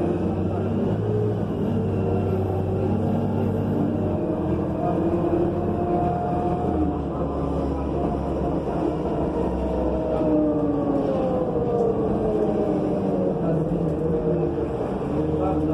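A bus engine hums and whines steadily while driving.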